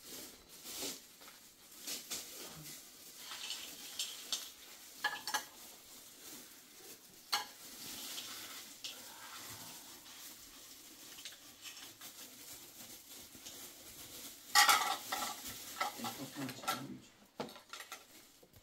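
Dishes clink softly.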